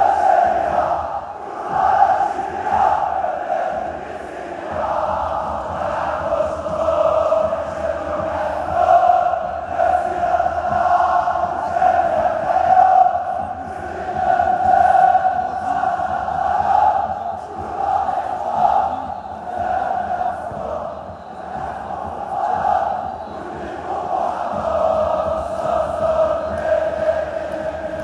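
A huge stadium crowd chants and sings in unison, echoing across open air.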